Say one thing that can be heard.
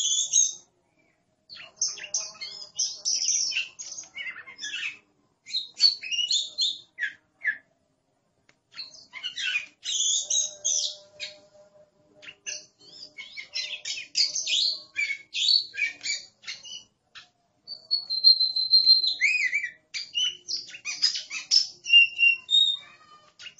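A songbird sings a varied, warbling song of quick whistles and chirps, close by.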